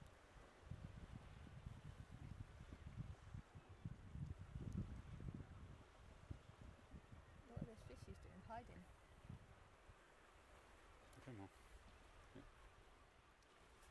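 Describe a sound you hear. Small waves ripple and lap gently on open water.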